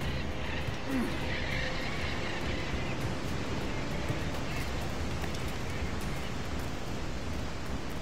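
Birds chirp and call in a jungle.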